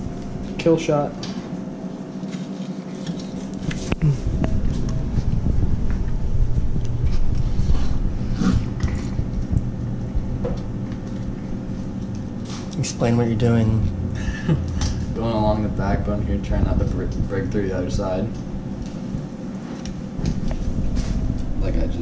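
A knife scrapes and cuts through a fish.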